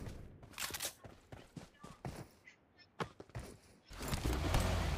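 Footsteps patter on the ground.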